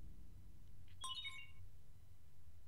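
A bright electronic chime rings out.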